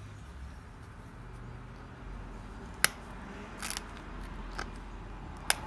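A knife scrapes and cuts through stiff material with short scratching strokes.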